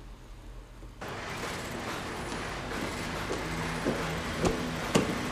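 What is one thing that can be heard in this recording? Footsteps climb stairs in an echoing stairwell.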